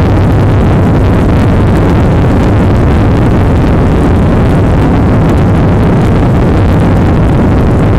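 Wheels rumble and rattle over a runway.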